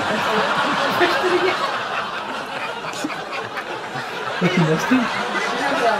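A young man and a young woman laugh close by.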